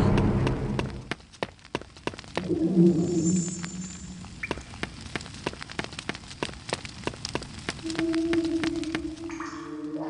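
Footsteps tap on a stone floor in an echoing space.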